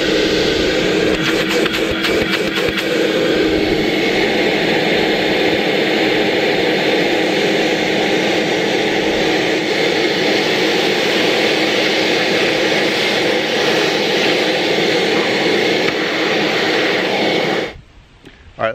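A shop vacuum runs with a loud, steady roar, then stops.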